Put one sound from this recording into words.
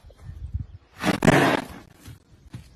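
A horse snorts loudly up close.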